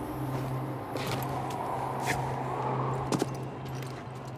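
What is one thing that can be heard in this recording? Footsteps scuffle on rough ground.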